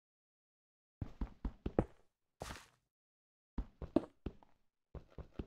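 A pickaxe chips and breaks stone in quick, repeated blows.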